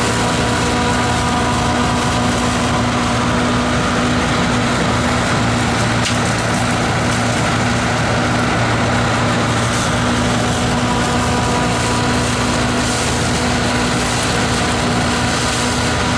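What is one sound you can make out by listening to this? A combine harvester's engine drones steadily up close.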